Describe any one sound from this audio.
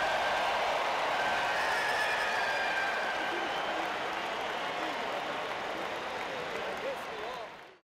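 A large stadium crowd cheers loudly and steadily, then slowly fades.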